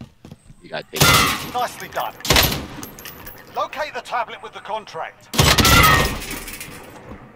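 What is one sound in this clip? Rifle shots crack loudly, echoing briefly.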